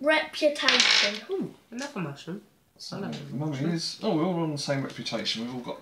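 Plastic game pieces clack on a table.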